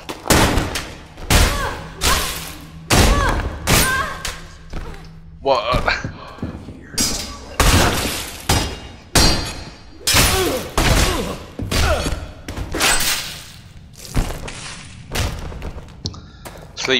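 Sword blows strike a body again and again with heavy, thudding hits.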